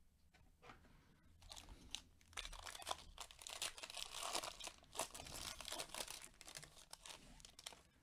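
A plastic wrapper crinkles and tears as a pack is opened.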